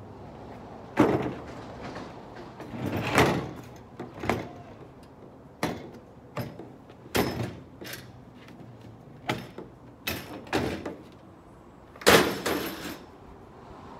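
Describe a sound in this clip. A metal table bangs and clatters as it is moved about.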